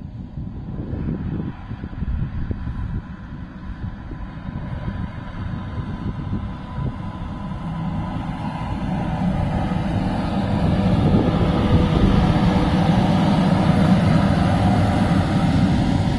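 Train wheels clatter and squeal on the rails close by.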